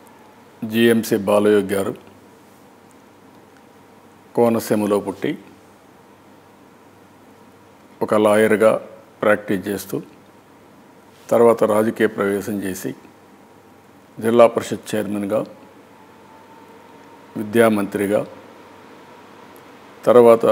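A middle-aged man speaks firmly into a close microphone, in short bursts with pauses.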